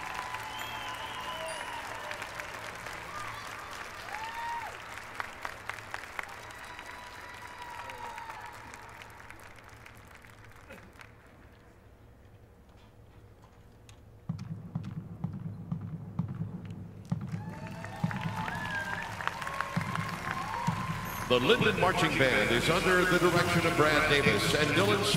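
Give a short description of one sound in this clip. A marching band's brass plays in a large open stadium, growing quiet and then swelling loud.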